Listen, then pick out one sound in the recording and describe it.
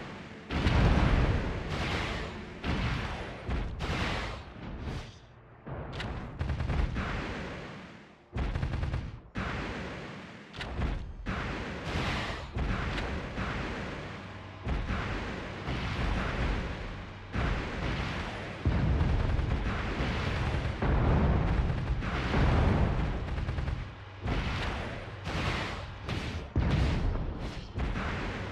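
Jet thrusters roar in bursts.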